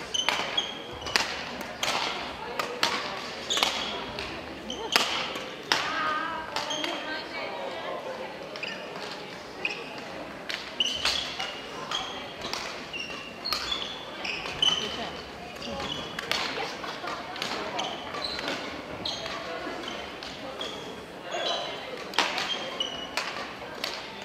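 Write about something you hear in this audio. Badminton rackets smack shuttlecocks in quick, irregular hits in a large echoing hall.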